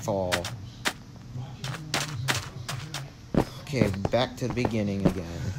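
Footsteps thud softly on hard ground.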